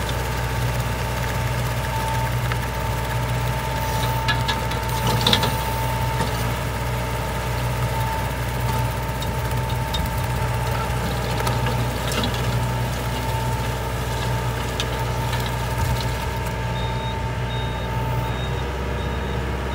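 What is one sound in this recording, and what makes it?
A diesel tractor engine drones under load.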